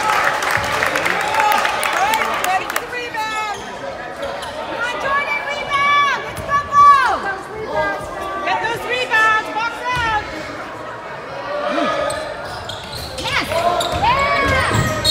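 Basketball players' sneakers squeak on a hardwood court.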